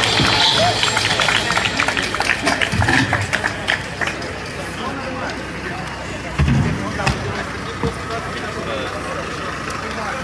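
A crowd chatters and shouts outdoors.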